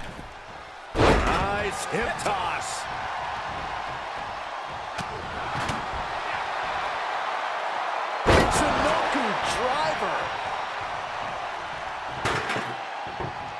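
Heavy thuds of bodies slamming onto a wrestling mat ring out.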